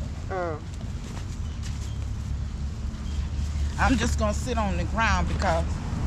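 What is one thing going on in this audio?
Plants rustle as a woman sits down among them.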